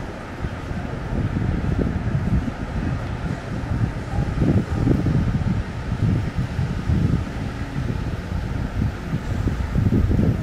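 Traffic rumbles along a nearby street.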